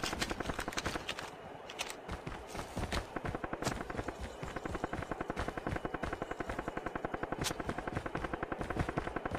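A machine gun fires in rapid, steady bursts.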